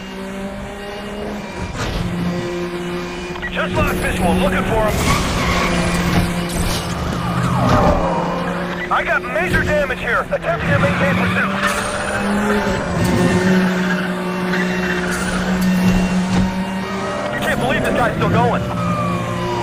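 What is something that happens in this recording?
A sports car engine roars at high speed, rising and falling as it shifts gears.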